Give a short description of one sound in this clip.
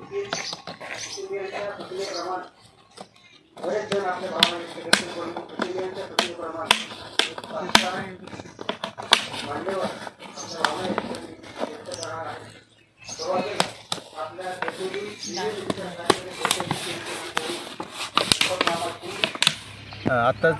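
A plastic bottle crinkles and taps against the ground.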